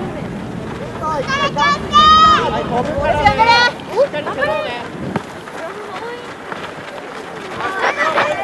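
Children shout to each other across an open field.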